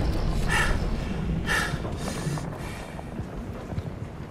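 Fires crackle and burn nearby.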